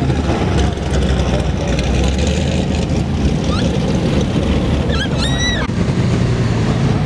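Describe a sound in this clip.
A sports car engine rumbles loudly as the car rolls slowly past.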